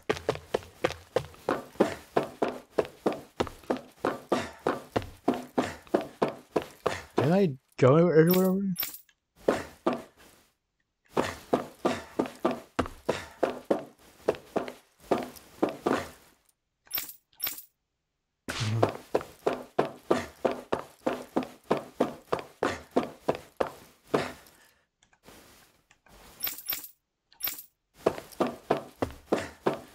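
Quick footsteps run steadily on a hard metal floor.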